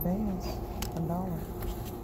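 Plastic packaging rustles as a hand brushes against it.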